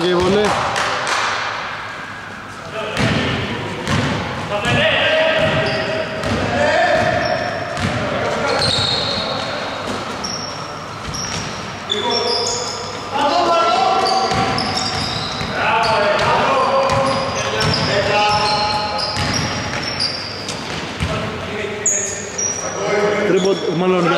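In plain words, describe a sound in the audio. Men shout and call out across the court.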